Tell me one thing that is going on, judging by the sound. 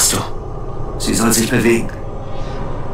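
A second man answers tensely.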